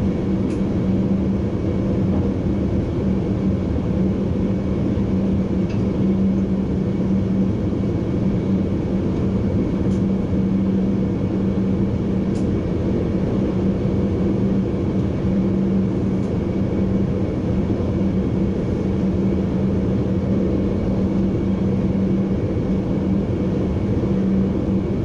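A train rumbles steadily along the rails with a low engine hum.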